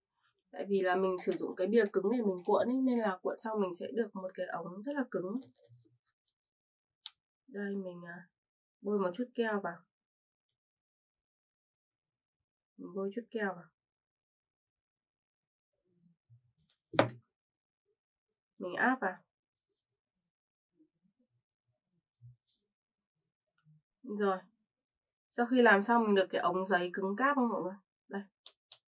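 A young woman talks calmly and close by, in short bursts.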